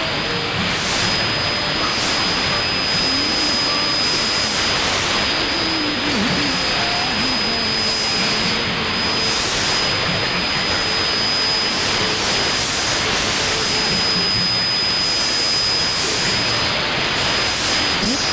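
Radio static hisses steadily through a loudspeaker.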